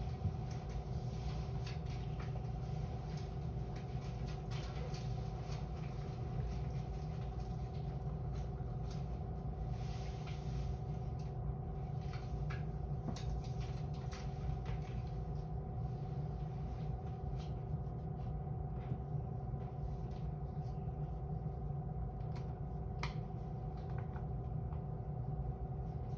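A train's motor hums steadily while it stands still.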